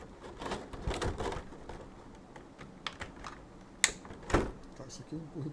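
Small plastic pieces click and rattle in a man's hands.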